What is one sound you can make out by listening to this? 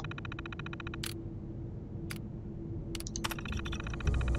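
Short electronic clicks sound as terminal options are selected.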